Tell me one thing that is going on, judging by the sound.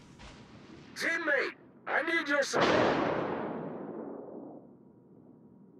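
Heavy naval guns fire with loud booms that rumble away.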